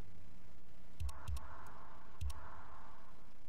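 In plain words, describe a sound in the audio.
Game menu blips sound as options are selected.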